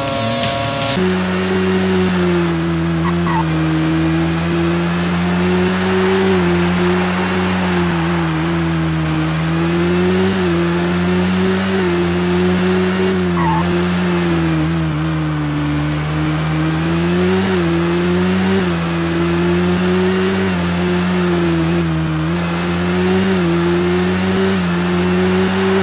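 A racing car engine drones loudly, rising and falling in pitch as it speeds up and slows down.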